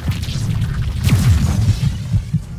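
A lightning bolt crackles and booms.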